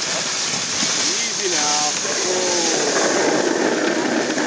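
Sled dogs whine and yelp excitedly.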